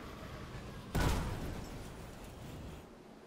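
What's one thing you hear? A heavy impact booms suddenly, then fades.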